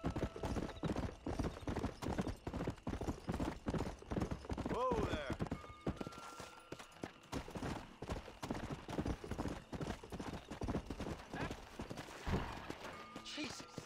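Horse hooves gallop quickly on a dirt track.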